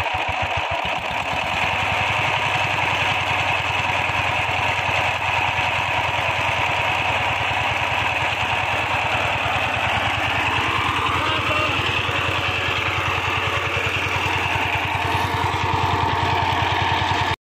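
A small diesel engine chugs loudly and steadily close by.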